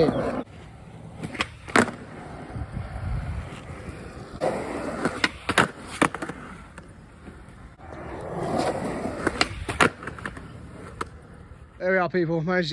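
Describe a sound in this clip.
Skateboard wheels roll and rumble over rough concrete.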